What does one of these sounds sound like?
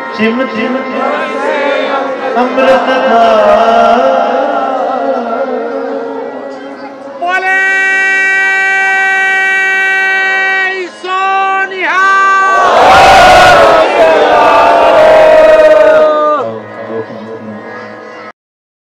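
A man sings devotional hymns through a microphone.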